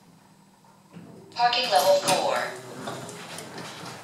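Elevator doors rumble and slide open.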